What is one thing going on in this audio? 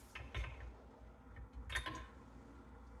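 Metal parts clink faintly.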